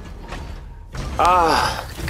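Steam hisses as a pod door opens.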